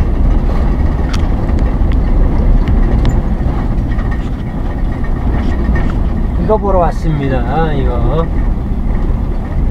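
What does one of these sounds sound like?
Tyres rumble steadily over a road.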